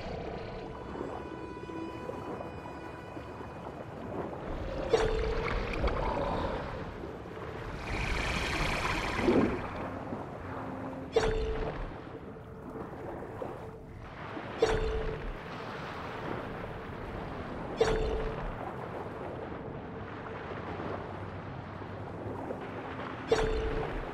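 Muffled water rumbles and swirls around a swimmer.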